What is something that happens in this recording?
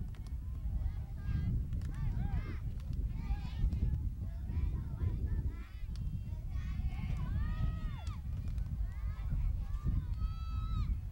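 Adults and children shout and cheer from across an open field outdoors.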